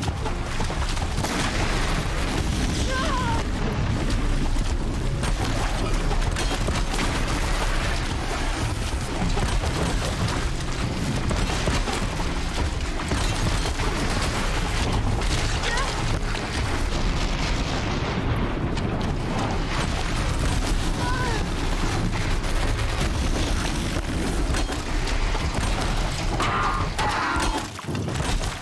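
A large machine creature roars and clanks.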